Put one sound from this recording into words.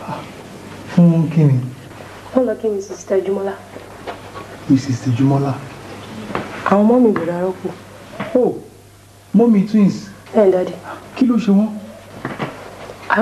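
A young woman answers softly nearby.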